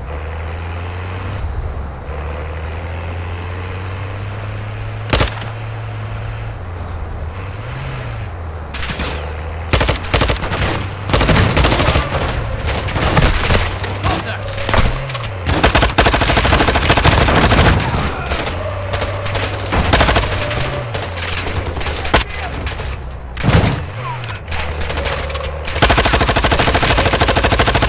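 A heavy vehicle engine rumbles and drones steadily.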